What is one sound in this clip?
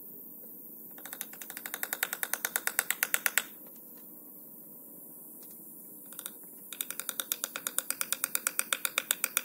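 A metal ratchet clicks rapidly and steadily in short bursts.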